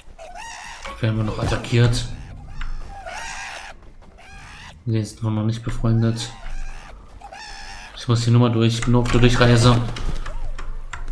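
A large bird-like creature gives loud, harsh calls.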